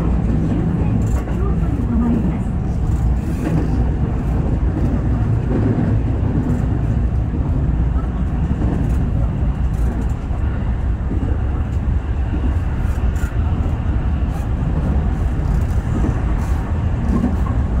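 Train wheels clack over rail joints.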